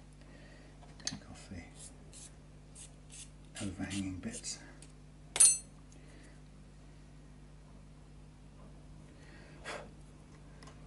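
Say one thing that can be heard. Small metal parts click and tap on a hard surface.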